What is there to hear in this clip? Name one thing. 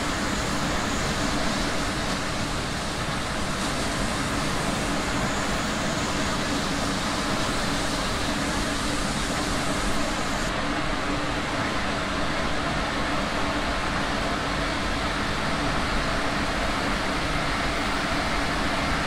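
A tram's electric motor hums steadily.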